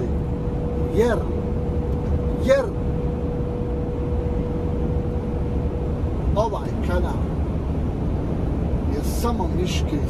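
A man speaks in short bursts with animation close by.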